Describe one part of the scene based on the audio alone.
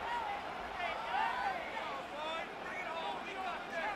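A stadium crowd cheers in the distance.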